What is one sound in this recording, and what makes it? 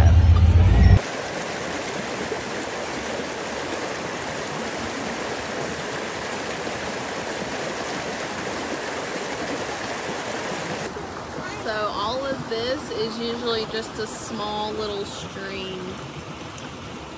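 Water rushes and gurgles in a fast stream.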